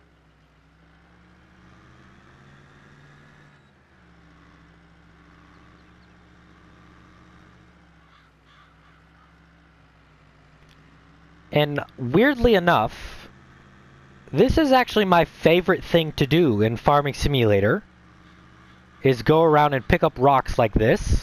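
A tractor engine hums steadily.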